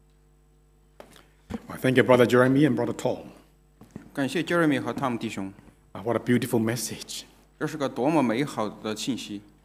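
A middle-aged man speaks clearly into a microphone, in short phrases.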